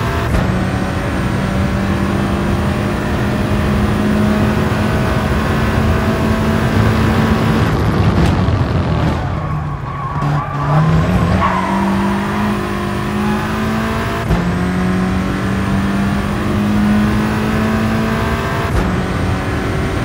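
A racing car engine roars at high revs, dropping in pitch as it slows and climbing again as it speeds up through the gears.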